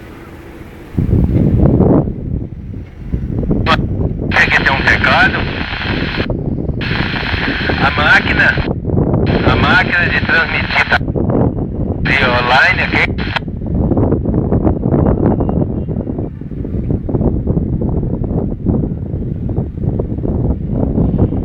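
A handheld radio scanner plays crackling radio transmissions through its small speaker.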